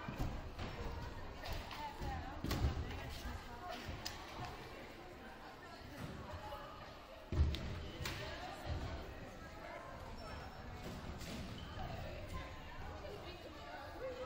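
Sneakers squeak and thump on a wooden floor.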